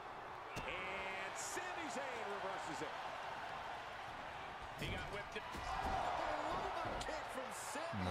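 Blows thud as wrestlers strike and slam each other.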